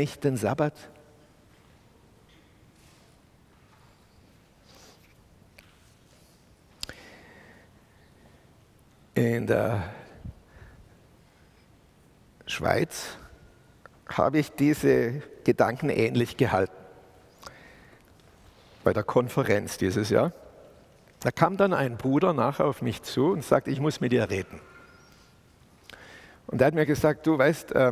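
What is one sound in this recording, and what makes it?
A middle-aged man speaks with animation through a microphone in an echoing hall, pausing often.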